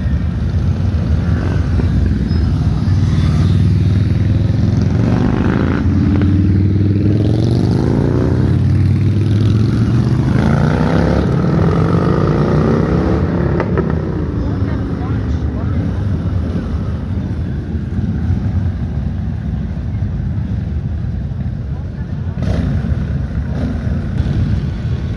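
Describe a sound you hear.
Motorcycle engines rumble loudly as they ride past one after another.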